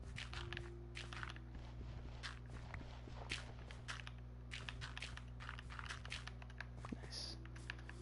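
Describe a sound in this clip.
Dirt crunches in short bursts as blocks are dug.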